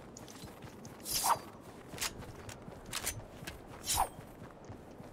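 A pickaxe swishes through the air.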